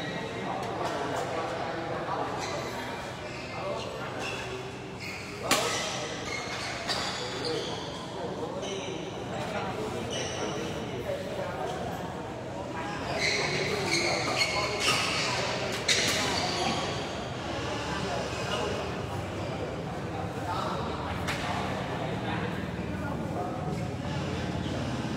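Shuttlecocks are struck with rackets in sharp pops.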